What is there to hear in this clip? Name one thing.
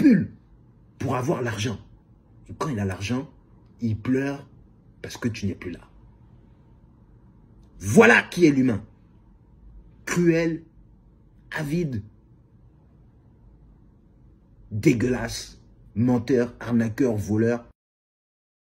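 A young man talks with animation in short bursts, close to the microphone.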